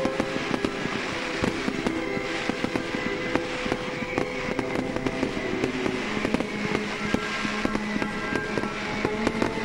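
Fireworks crackle and pop rapidly nearby.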